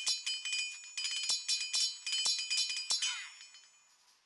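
Metal blades clash and clang in a busy skirmish.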